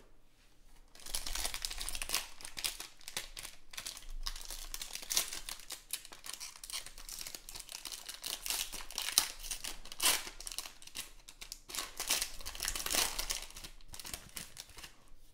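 A foil wrapper crinkles and tears loudly as hands pull it open.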